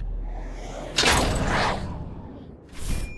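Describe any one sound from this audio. A magical spell bursts with a loud rushing whoosh.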